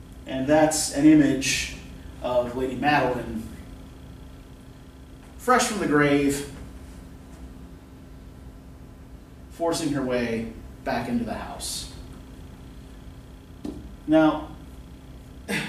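A man speaks calmly in short bursts, lecturing nearby.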